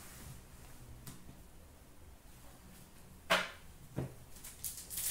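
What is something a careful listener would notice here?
Hands handle and tap plastic card packs.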